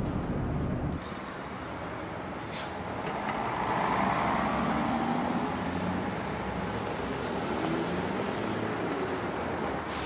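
A bus idles outdoors.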